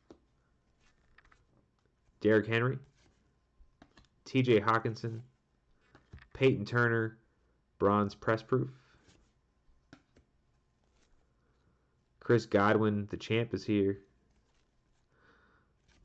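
Trading cards slide and rustle softly as they are shuffled by hand.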